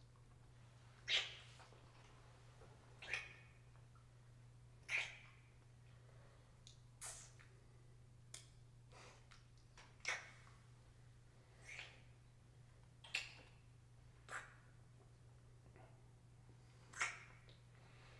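Lips kiss with soft, wet smacking sounds, again and again.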